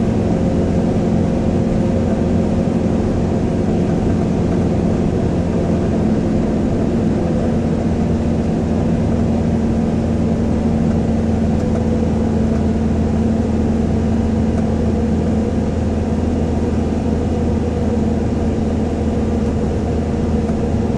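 Tyres roar on the road, echoing in an enclosed space.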